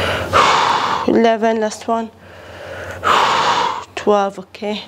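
A young woman breathes out hard.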